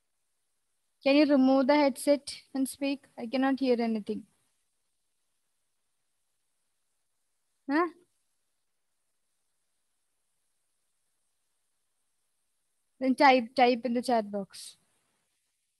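A young woman speaks calmly and clearly into a close microphone, in short bursts.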